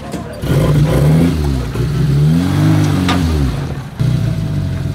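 An off-road vehicle's engine revs up and down, rising and falling in pitch.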